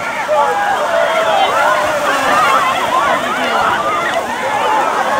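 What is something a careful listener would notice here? Water splashes as many people run through shallow waves.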